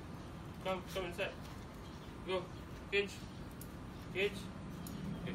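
A dog barks repeatedly.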